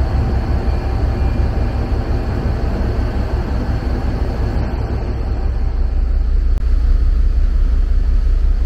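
Wind blows across a microphone outdoors.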